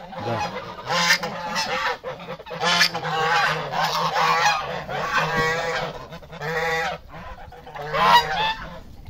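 A flock of geese honk loudly and continuously close by.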